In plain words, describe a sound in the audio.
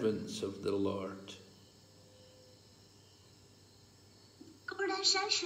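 An elderly man speaks close to a phone microphone.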